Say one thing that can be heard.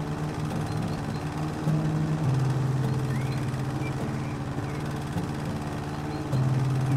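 A lawn mower engine hums steadily, its pitch shifting now and then.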